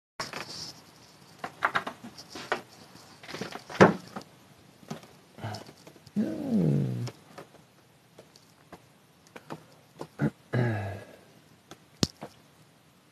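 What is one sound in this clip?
Handling noises rustle and knock against a microphone.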